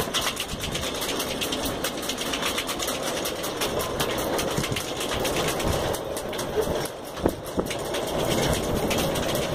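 Strong gusting wind buffets the microphone outdoors.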